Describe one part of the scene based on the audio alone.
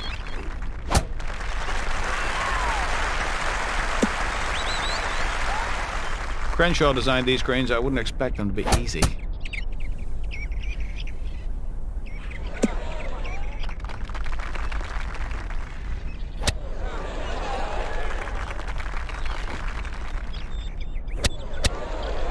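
A golf club strikes a golf ball with a sharp click.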